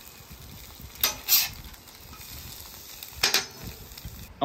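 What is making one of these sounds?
A metal spatula scrapes across a griddle.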